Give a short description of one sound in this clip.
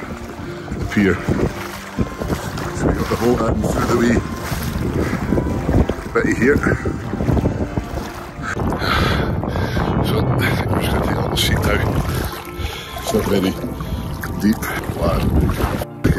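Water splashes and laps around a swimmer.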